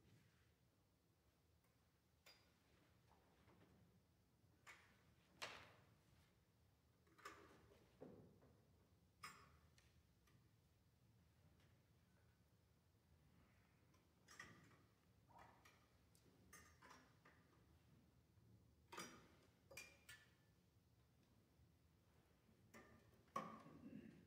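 A piano plays soft, sparse notes in an echoing hall.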